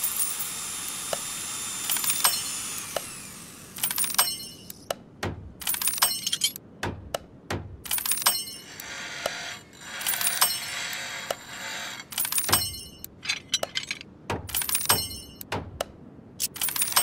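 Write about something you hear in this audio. Short electronic chimes and clicks ring out from a game menu, over and over.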